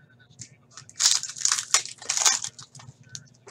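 A foil wrapper crinkles and tears.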